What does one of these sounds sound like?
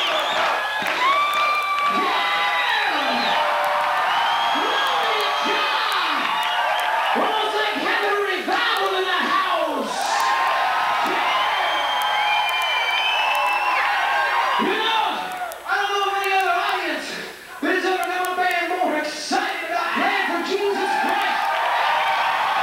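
A large crowd cheers and screams loudly.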